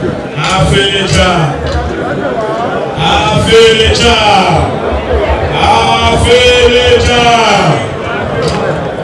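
A woman sings through a loudspeaker.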